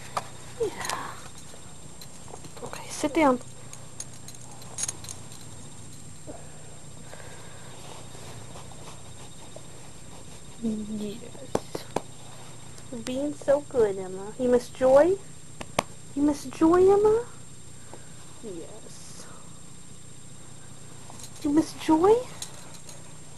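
A dog whines and howls in short, rising bursts close by.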